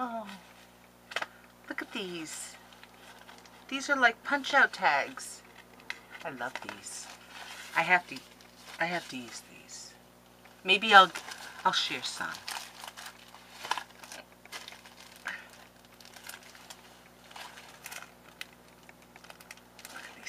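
Paper rustles and crinkles in a woman's hands.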